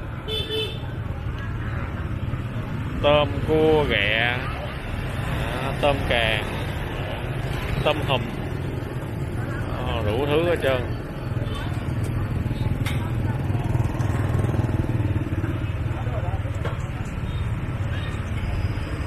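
Other motorbikes drone past in street traffic.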